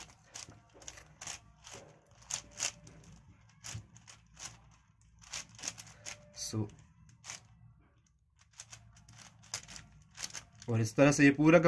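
A puzzle cube clicks and clacks quickly as its layers are turned by hand.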